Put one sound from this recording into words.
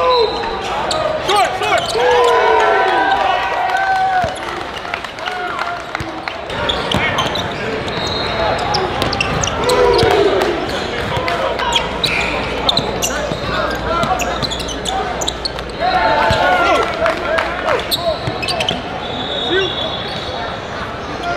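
A crowd murmurs and cheers in an echoing gym.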